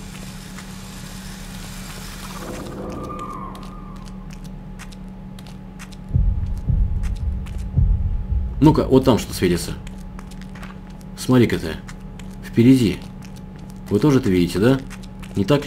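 Footsteps crunch slowly over debris on a hard floor.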